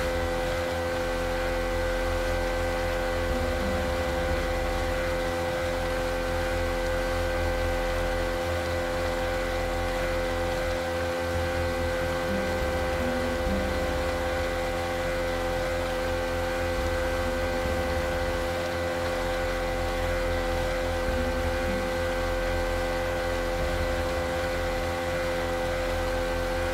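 Water splashes and rushes against a boat's hull.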